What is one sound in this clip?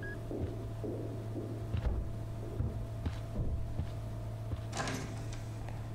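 Footsteps thud on a hard floor as someone walks away.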